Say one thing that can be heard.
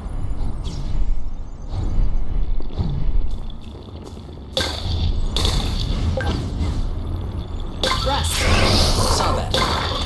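A shimmering whoosh sweeps along as a figure glides fast over grass.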